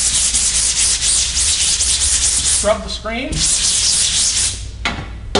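A sponge scrubs rhythmically against a metal surface.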